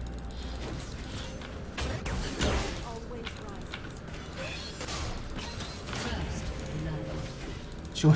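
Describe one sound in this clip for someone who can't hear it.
Game spell effects and hits clash and whoosh.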